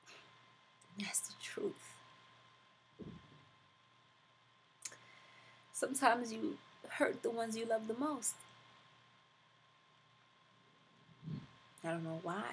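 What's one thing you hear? A young woman speaks close to a microphone, in short bursts with pauses.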